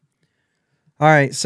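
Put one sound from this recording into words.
A man speaks briefly close to a microphone.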